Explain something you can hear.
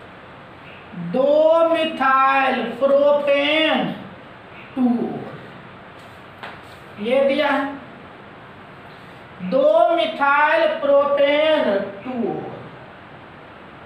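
A man speaks clearly and steadily, in a lecturing tone.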